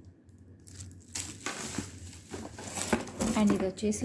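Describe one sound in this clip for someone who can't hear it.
A cardboard box rustles and scrapes as it is opened.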